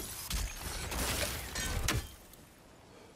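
An axe whooshes through the air and strikes with a thud.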